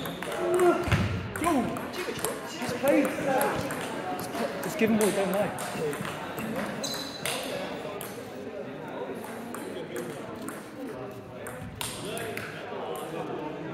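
A table tennis ball clicks back and forth off bats and a table.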